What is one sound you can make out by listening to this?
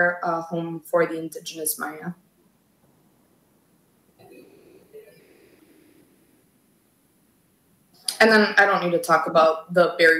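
A woman speaks steadily through an online call, pausing briefly.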